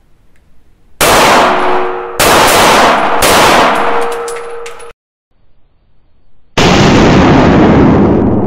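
Pistol shots bang loudly, one after another.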